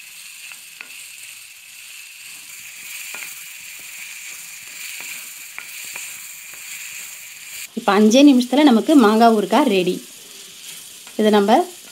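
Chopped vegetables rustle and scrape as a hand stirs them in a pan.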